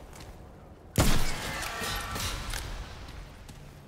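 A gunshot bangs loudly with a ringing echo.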